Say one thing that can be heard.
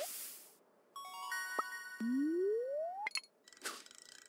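A short cheerful jingle chimes.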